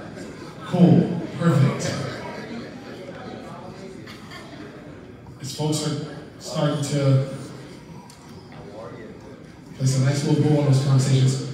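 A man speaks with animation into a microphone, heard through loudspeakers in a large echoing hall.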